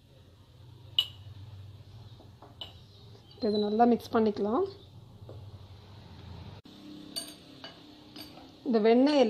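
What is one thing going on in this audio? A spoon clinks against a glass bowl.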